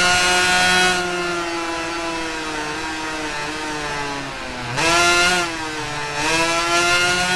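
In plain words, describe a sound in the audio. A 250cc two-stroke racing motorcycle engine drops in revs as the bike brakes and downshifts for a corner.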